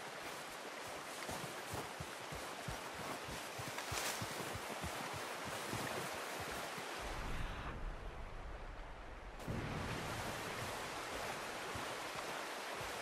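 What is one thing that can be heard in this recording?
A stream rushes and gurgles nearby.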